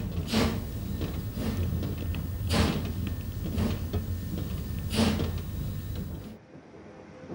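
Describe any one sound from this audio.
Railway wagons rumble along the track.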